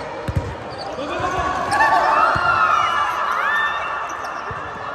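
Sneakers squeak on a court floor.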